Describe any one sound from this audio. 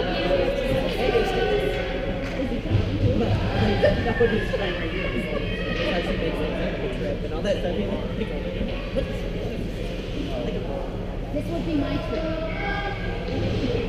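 Skates scrape and hiss on ice in a large echoing hall.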